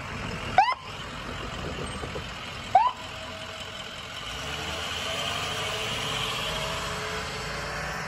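An ambulance engine rumbles as it drives close by.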